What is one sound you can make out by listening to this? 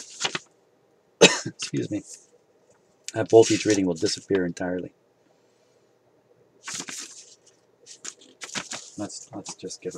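Paper rustles as a booklet is handled and its pages are turned.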